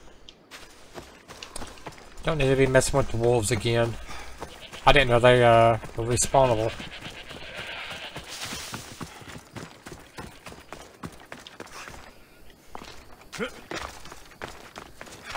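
Footsteps run over dry grass and rock.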